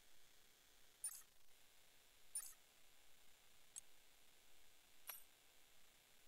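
Short menu clicks sound as selections change.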